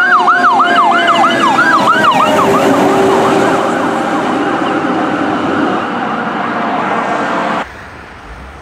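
A fire engine roars as it drives past.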